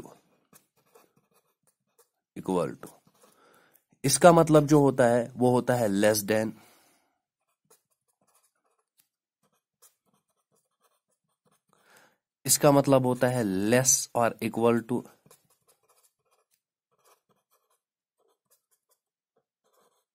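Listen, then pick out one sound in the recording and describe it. A marker squeaks faintly as it writes on paper.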